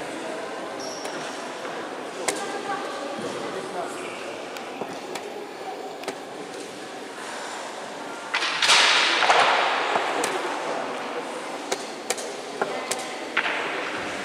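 Wooden chess pieces click as they are set down on a board.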